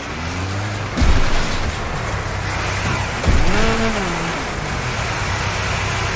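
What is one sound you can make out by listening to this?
Car bodies crash and bang together.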